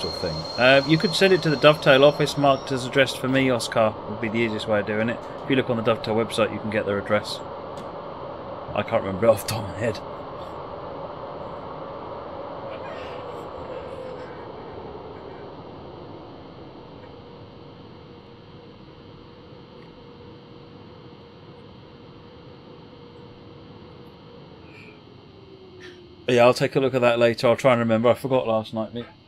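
A middle-aged man talks with animation into a headset microphone.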